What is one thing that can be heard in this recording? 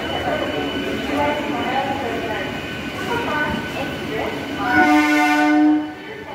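A train rolls slowly past.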